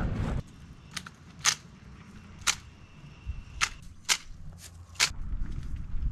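A blade chops sharply at branches several times.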